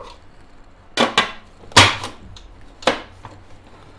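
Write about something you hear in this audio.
A plastic lid clicks and knocks onto a blender jug.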